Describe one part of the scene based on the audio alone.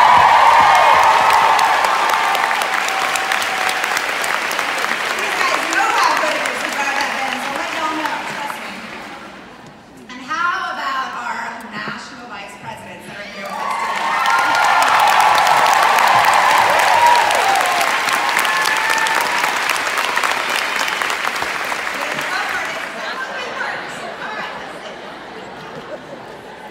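A large crowd claps and applauds.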